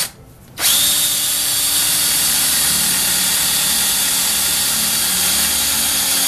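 A cordless drill whirs loudly, boring into metal.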